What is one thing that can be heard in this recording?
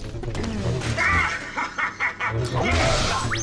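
A small robot beeps.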